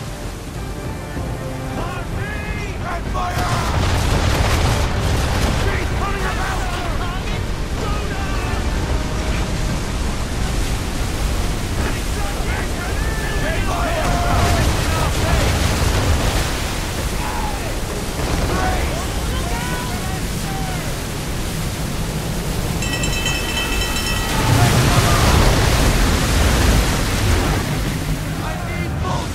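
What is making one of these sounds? Stormy waves crash and roar against a ship.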